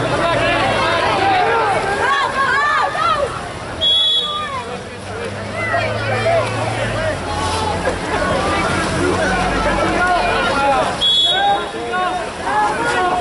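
Swimmers splash in the water.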